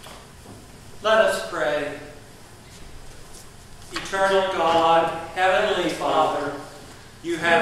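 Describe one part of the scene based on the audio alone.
A man chants in a sung voice, echoing in a large hall.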